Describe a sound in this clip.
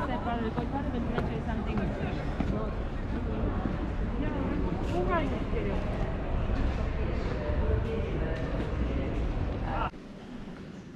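Footsteps tread on pavement outdoors.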